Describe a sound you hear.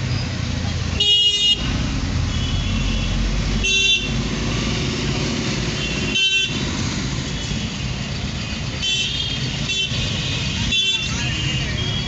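Car horns honk nearby.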